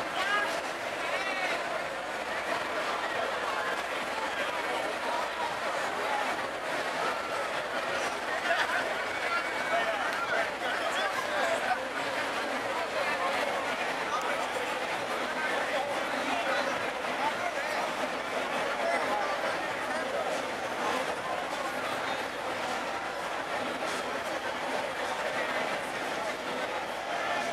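A crowd of people chatters outdoors all around.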